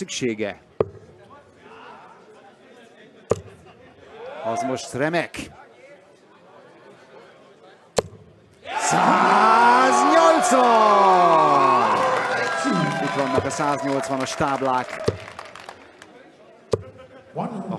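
Darts thud sharply into a dartboard.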